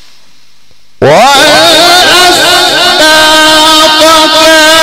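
A man chants loudly through a microphone, echoing in a hall.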